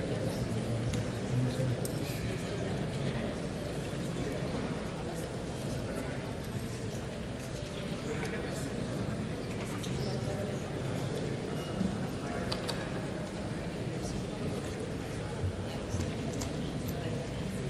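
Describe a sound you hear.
Many people murmur and talk at once in a large echoing hall.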